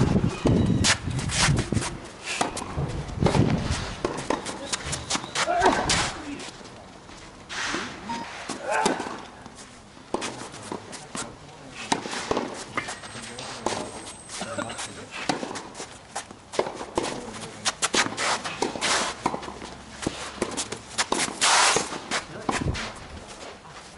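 A tennis racket hits a ball with sharp pops, back and forth.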